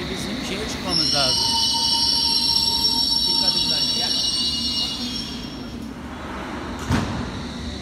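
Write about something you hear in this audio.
Train wheels rumble on the rails.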